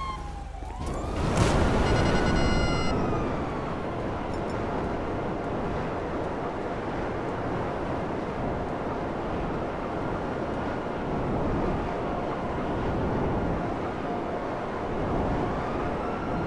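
A jet engine roars steadily as a flying motorbike speeds along.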